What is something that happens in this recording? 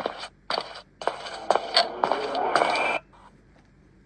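Loud game sound effects play from a tablet speaker.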